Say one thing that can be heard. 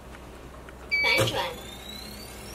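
A keypad beeps once as a button is pressed.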